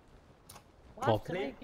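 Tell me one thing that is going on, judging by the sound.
A young man speaks briefly with animation into a close microphone.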